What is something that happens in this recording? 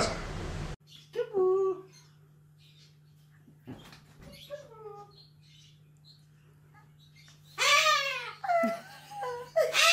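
A cockatoo screeches loudly.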